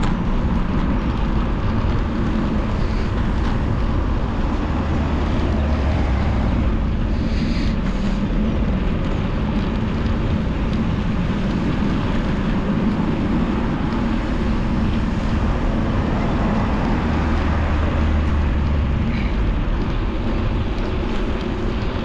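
Tyres hum steadily on smooth pavement.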